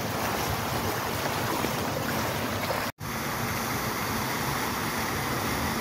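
Fountain water splashes and gushes steadily.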